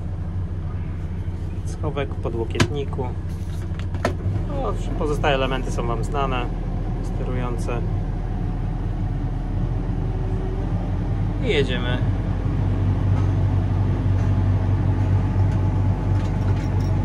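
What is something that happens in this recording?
A heavy machine's diesel engine hums steadily at idle.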